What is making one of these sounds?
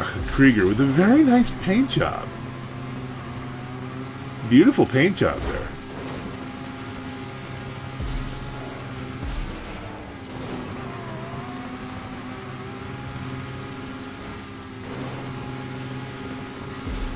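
A sports car engine hums steadily and revs up in short bursts.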